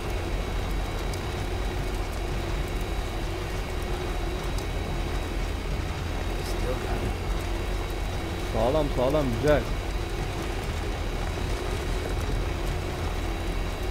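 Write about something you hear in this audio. A truck engine rumbles steadily as the truck drives along a road.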